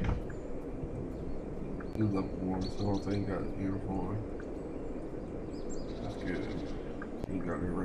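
Footsteps crunch over grass and dirt.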